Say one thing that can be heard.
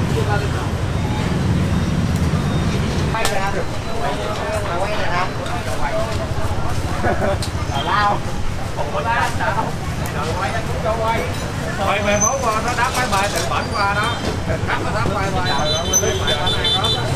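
Food sizzles in hot pots.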